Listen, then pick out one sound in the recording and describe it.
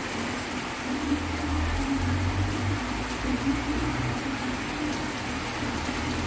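Wind gusts through tree leaves.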